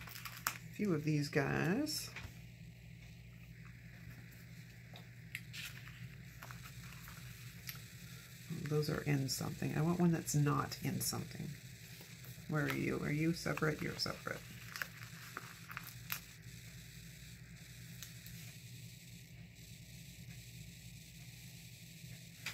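A sticker peels off a backing sheet.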